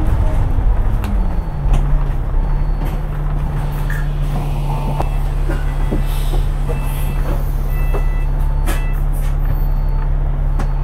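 Traffic rolls past on a city street.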